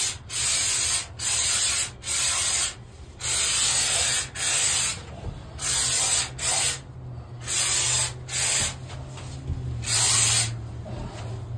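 A spray gun hisses loudly in short, repeated bursts.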